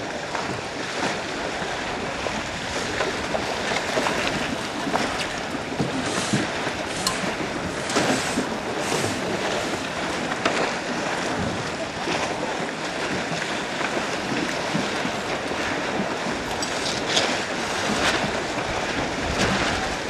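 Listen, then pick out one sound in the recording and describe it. Wind blows strongly outdoors.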